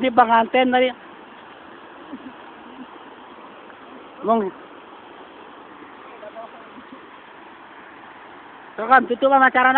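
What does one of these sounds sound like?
Water splashes and trickles in a small channel.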